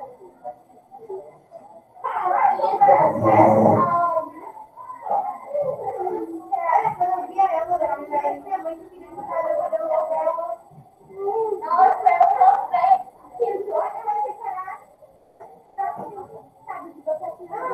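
A woman speaks calmly through a computer microphone, as in an online call.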